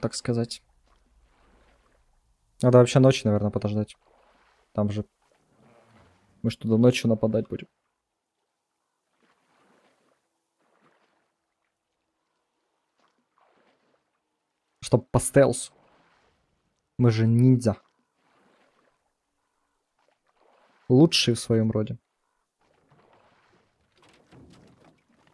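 An oar splashes softly in calm water.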